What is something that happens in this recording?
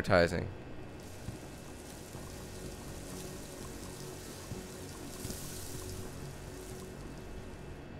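Water runs from a tap and splashes into a sink.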